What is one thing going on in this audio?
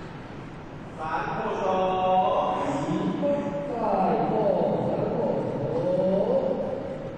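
A congregation of voices sings together in a large hall.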